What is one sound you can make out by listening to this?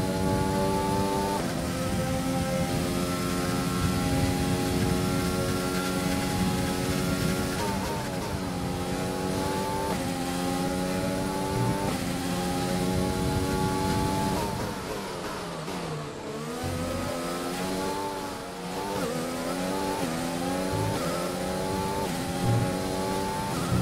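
A racing car engine screams at high revs, dropping in pitch with each gear change and climbing again.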